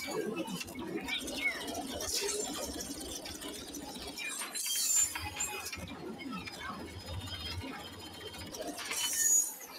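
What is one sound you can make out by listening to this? Laser blasters fire in rapid bursts.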